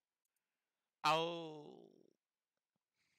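A short notification chime sounds.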